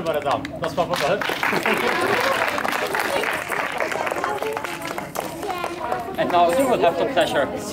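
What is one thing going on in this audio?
Young girls chatter and laugh close by.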